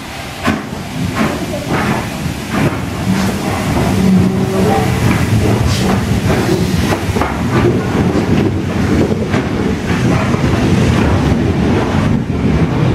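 Steel wheels rumble and clank over rail joints.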